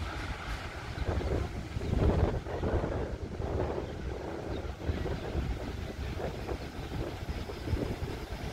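A diesel train engine rumbles steadily in the distance.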